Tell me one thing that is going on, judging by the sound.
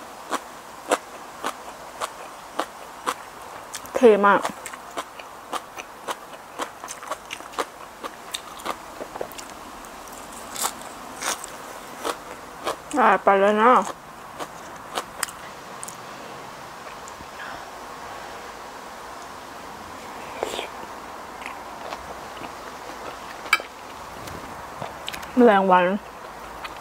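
A young woman chews crunchy raw vegetables close to the microphone.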